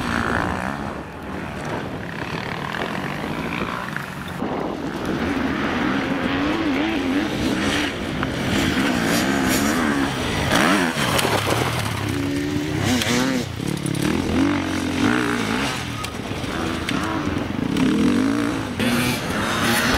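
A dirt bike engine revs hard, rising and falling as it climbs.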